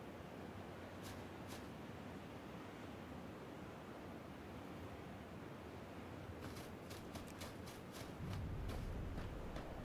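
Footsteps run through dry grass.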